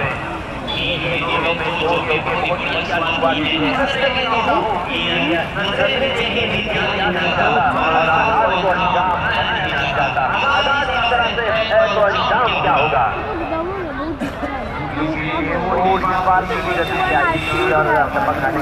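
A large crowd chatters and calls out noisily outdoors.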